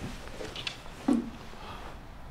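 A cup is set down on a table with a soft knock.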